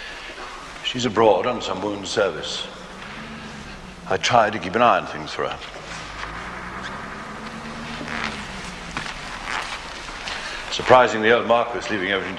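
An older man speaks firmly and loudly.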